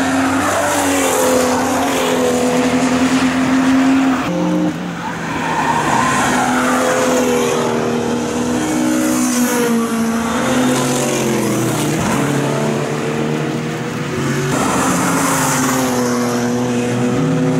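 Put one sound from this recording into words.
Racing car engines roar loudly as the cars speed past, shifting gears.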